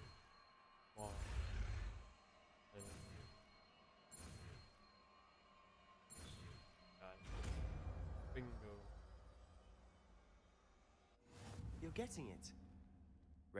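A magic spell bursts with a loud whoosh and rumble.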